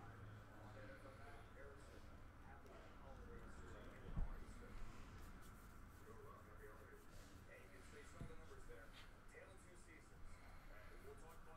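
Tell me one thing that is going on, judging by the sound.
Trading cards rustle and flick as they are shuffled through.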